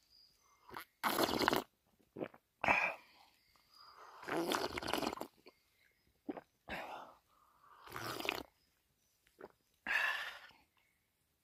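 A man slurps water from a hollow in a tree stump.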